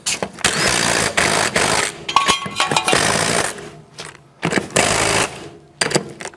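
An impact wrench rattles in loud bursts on wheel nuts.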